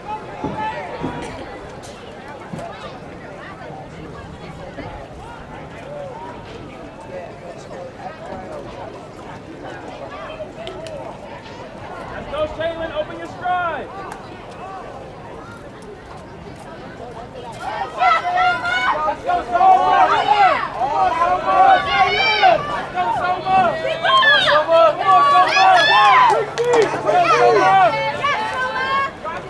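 A crowd of spectators cheers and shouts outdoors, growing loud and excited as the race goes on.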